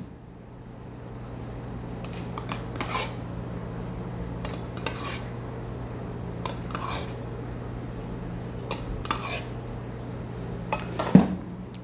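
A metal spoon scrapes and taps inside a milk jug.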